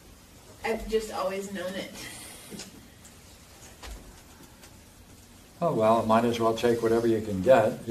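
An elderly man speaks calmly, in a room with some echo.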